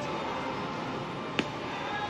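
Footsteps pass by on a hard floor.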